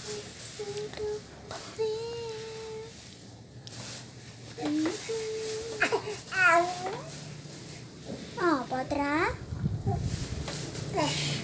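A baby coos and squeals close by.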